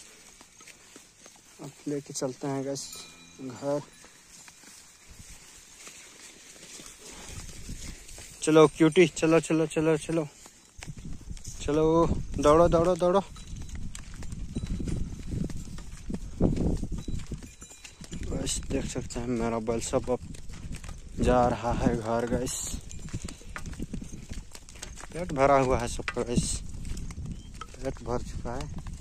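Hooves clop on a stony dirt path.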